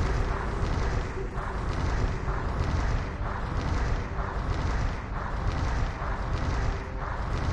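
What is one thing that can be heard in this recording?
Fire roars steadily in a burning ring on the ground.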